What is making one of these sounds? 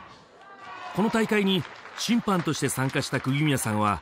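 A gymnast lands on a mat with a thud.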